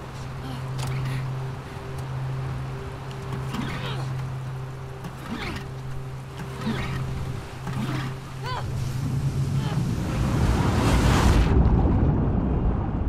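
Storm waves crash and roar around a small boat.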